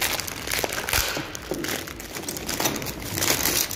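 Paper crinkles and rustles.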